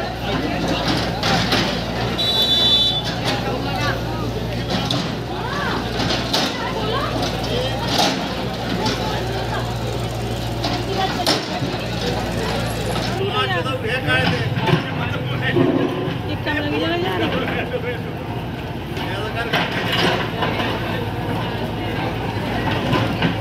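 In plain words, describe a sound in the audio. A crowd of men talks and calls out loudly outdoors.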